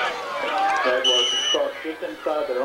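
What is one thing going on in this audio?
A referee's whistle blows a short sharp blast.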